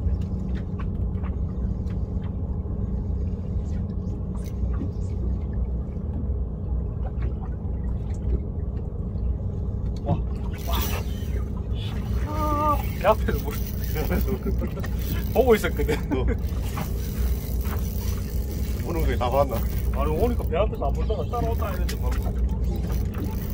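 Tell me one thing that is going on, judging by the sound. A boat engine idles with a low, steady hum.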